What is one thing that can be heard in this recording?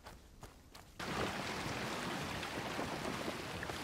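Waves splash against a boat at sea.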